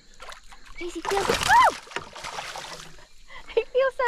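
A fish splashes in the water.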